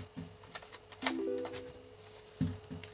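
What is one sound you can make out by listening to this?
A short electronic chime rings from a handheld game console starting up.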